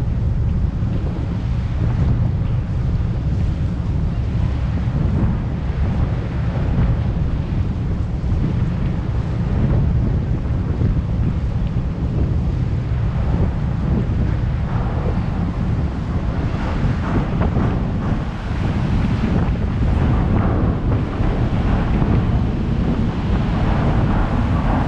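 Water churns and splashes against a moving boat's hull.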